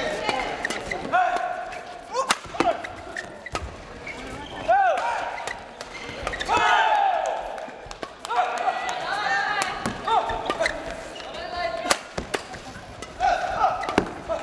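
A racket strikes a shuttlecock with a sharp pop.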